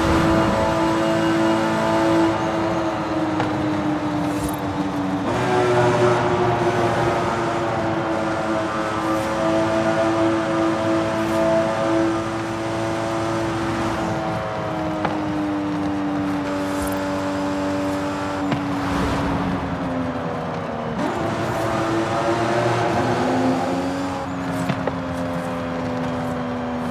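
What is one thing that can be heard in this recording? A sports car engine roars at high speed, its pitch dropping at each gear shift.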